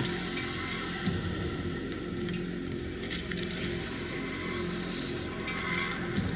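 Hands grip and scrape on stone while climbing a wall.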